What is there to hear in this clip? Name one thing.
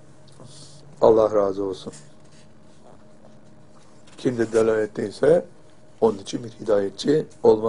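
An elderly man speaks calmly and deliberately into a microphone, close by.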